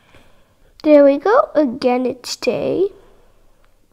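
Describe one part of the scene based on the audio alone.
A young girl speaks with animation close to a microphone.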